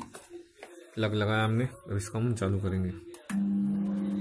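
Microwave buttons beep as they are pressed.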